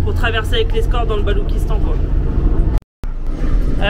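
A young woman talks to a close microphone.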